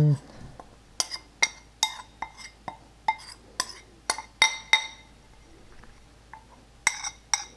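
A spoon taps and scrapes against a small bowl.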